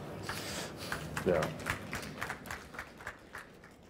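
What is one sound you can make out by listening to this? A man laughs softly into a microphone.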